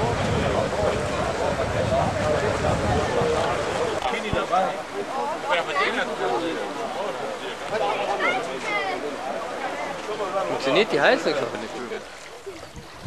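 A crowd of adults chats outdoors.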